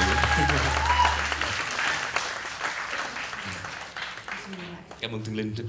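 An audience claps and cheers loudly in a large hall.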